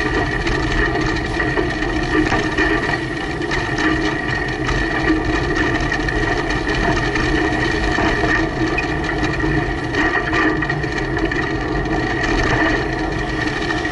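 A motorbike engine hums close by.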